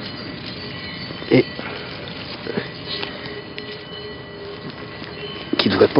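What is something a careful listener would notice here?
Fingers scrape and rustle through dry soil and leaf litter.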